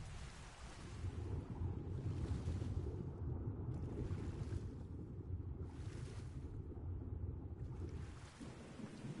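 A deep muffled underwater rumble surrounds a diver.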